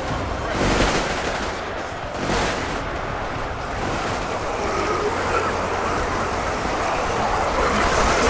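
Laser guns fire in rapid, overlapping bursts across a large battle.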